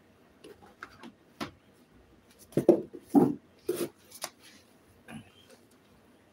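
A phone knocks and rustles as it is handled close by.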